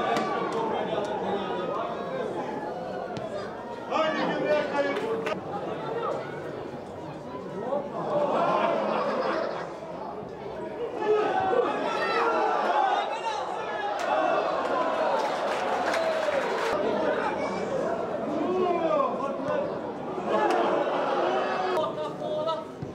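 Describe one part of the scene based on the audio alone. Footballers shout to each other across an open pitch outdoors.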